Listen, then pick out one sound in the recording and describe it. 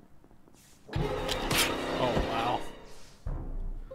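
A video game plays a sudden loud slashing sound.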